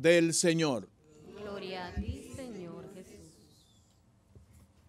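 A congregation murmurs a response together.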